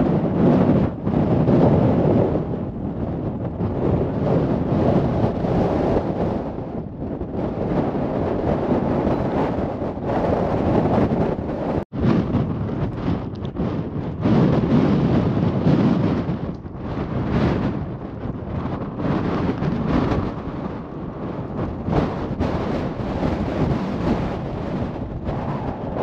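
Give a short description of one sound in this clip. Wind blows hard and rumbles against the microphone outdoors.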